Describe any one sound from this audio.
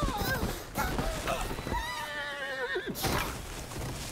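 A body tumbles down a snowy slope and thuds onto hard ice.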